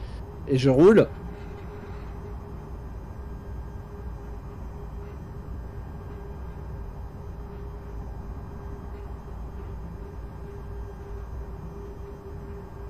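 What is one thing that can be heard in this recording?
An electric locomotive motor hums steadily.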